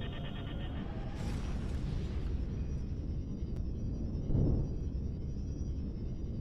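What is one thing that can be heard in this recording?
A rushing whoosh swells as a spacecraft jumps to high speed.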